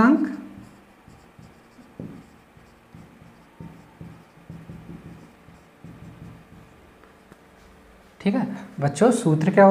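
A marker squeaks and taps as it writes on a board.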